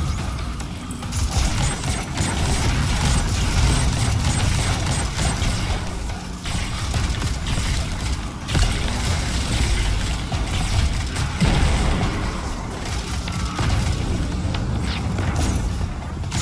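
An energy shield hums and crackles steadily.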